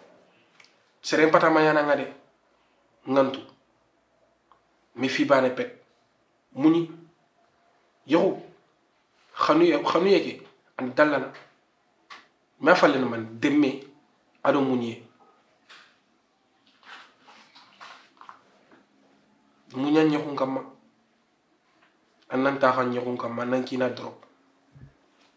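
A young man speaks calmly and close by, pausing often.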